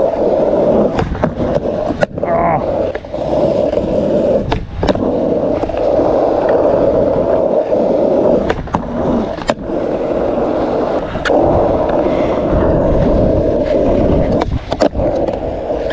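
A skateboard clacks sharply as it lands and hits the ground.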